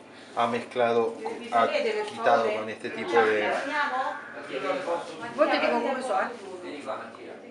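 An elderly woman talks with animation close by.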